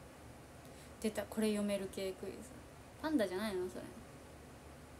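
A young woman speaks casually and close to a microphone in two short bursts.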